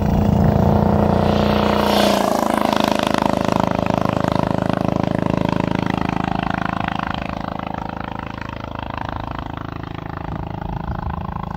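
A motorcycle engine roars close by and then fades into the distance.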